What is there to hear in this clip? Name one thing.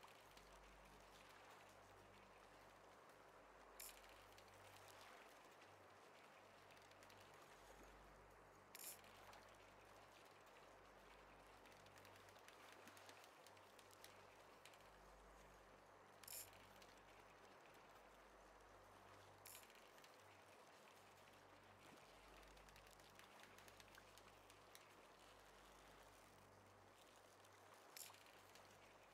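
A fishing reel winds in line.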